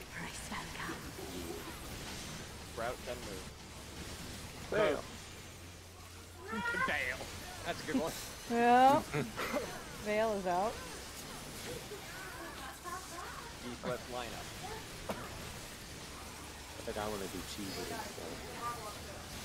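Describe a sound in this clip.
A middle-aged woman talks with animation, close to a microphone.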